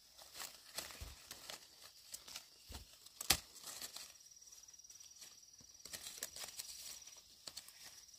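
Fruit stems snap off a branch.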